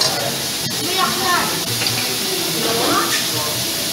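Sauce is poured onto a hot griddle and hisses.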